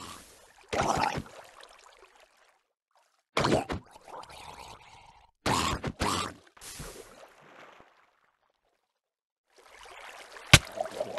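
Water splashes in short bursts.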